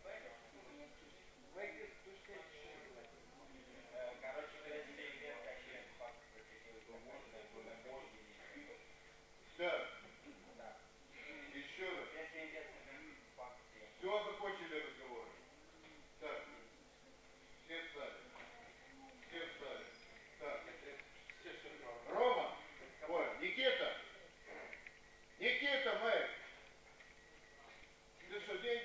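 Young men talk quietly in an echoing hall.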